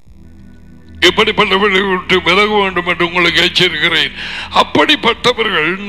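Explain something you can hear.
A man speaks with animation through loudspeakers in a large echoing hall.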